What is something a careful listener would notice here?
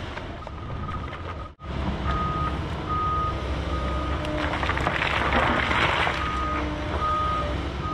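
An excavator's hydraulics whine in short bursts.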